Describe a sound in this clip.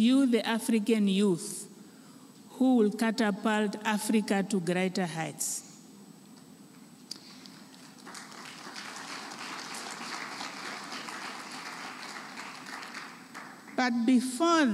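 A woman speaks with animation through a microphone, echoing in a large hall.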